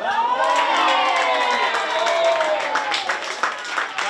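Young men shout and cheer outdoors after a goal.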